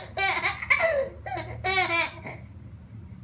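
A baby giggles and coos.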